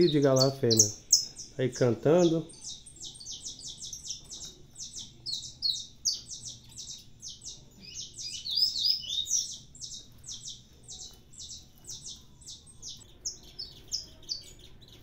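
Canaries sing in fast, high, twittering chirps.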